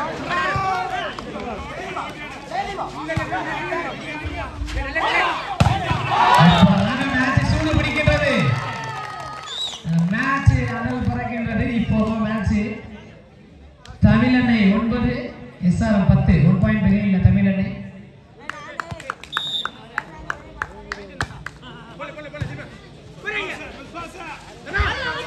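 A volleyball is slapped hard by hands.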